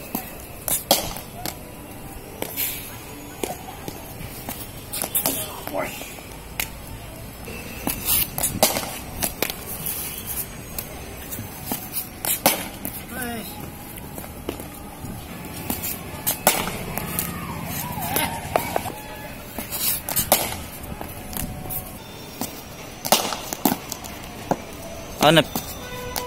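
A ball bounces on concrete and off a wall.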